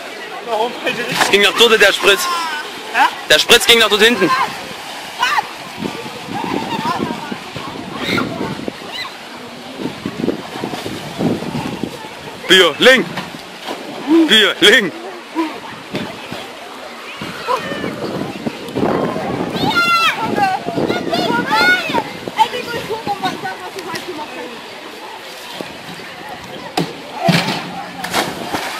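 Teenage boys shout and talk excitedly nearby, outdoors.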